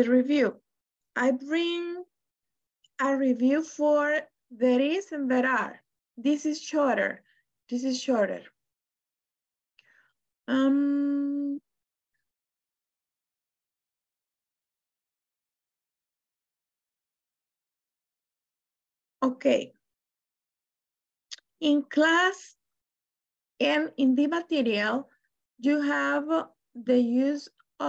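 A woman speaks calmly over an online call, pausing now and then.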